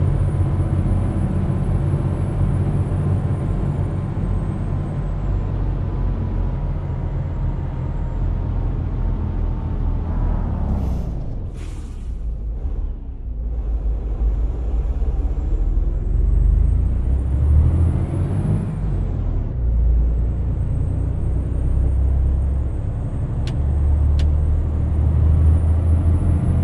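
A truck engine rumbles steadily, rising and falling in pitch with gear changes.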